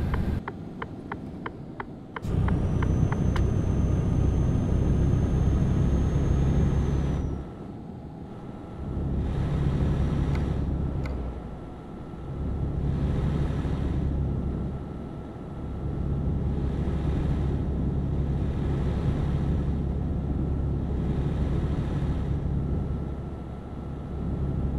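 A heavy truck engine drones steadily, easing off and picking up again at times.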